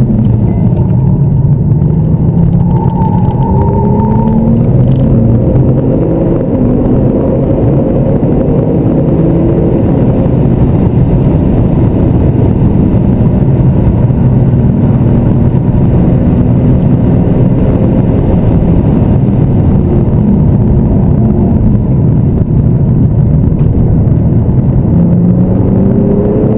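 Tyres roar on asphalt, heard from inside a car.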